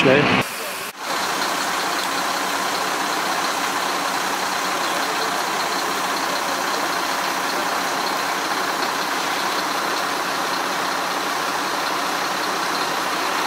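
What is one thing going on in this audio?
Water sprays steadily from a fire hose.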